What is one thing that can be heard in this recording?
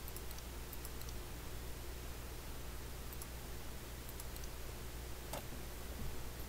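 Short, soft clicks sound as menu choices are made.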